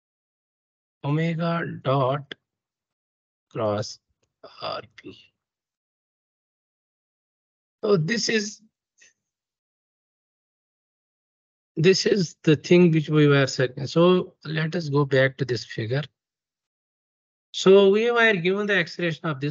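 A young man explains calmly through an online call, in short bursts with pauses.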